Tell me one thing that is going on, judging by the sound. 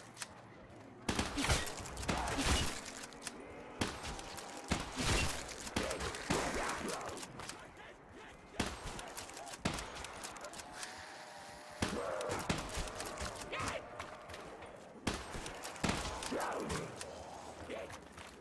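Zombies growl and groan close by.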